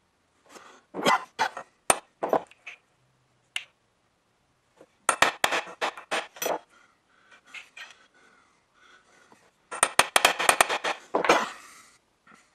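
A hammer strikes a metal punch in quick bursts of sharp metallic taps.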